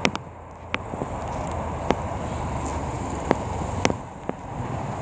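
Wind gusts outdoors, rumbling across the microphone.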